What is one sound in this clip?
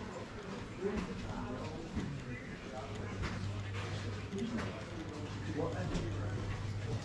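Footsteps tap steadily on stone paving.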